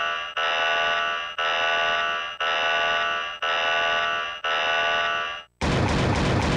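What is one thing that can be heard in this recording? A video game warning alarm blares in steady repeated pulses, about once a second.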